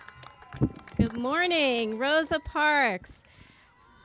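A woman speaks cheerfully through a microphone.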